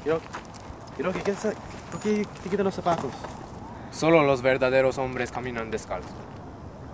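A teenage boy talks with animation close by.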